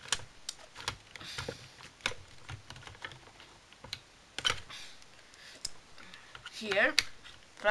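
Small plastic tools click and clatter in a plastic case.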